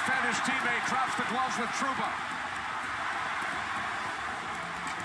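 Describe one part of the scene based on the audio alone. Hockey players trade punches with dull thuds.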